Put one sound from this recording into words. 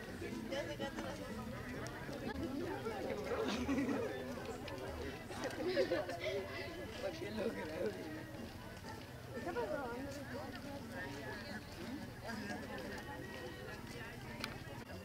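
A group of men and women chat as they walk outdoors.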